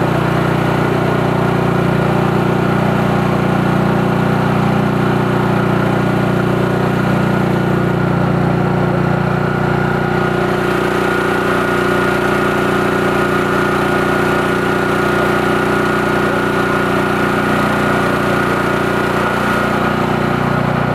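A small engine runs loudly and steadily close by.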